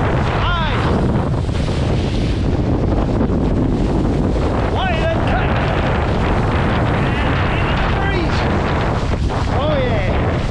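Strong wind roars steadily across a microphone outdoors.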